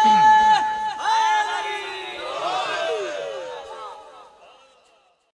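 A young man sings a mournful lament loudly through a microphone and loudspeakers, fading away at the end.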